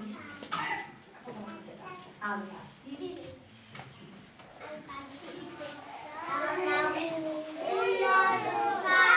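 Young children speak and sing loudly in an echoing hall.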